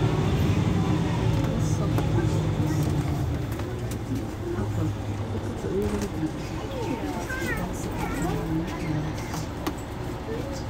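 A bus engine idles with a low, steady rumble close by.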